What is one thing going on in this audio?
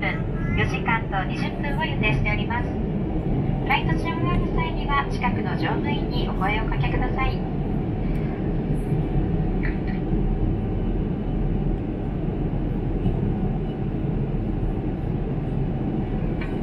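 A jet airliner's engines roar steadily, heard from inside the cabin.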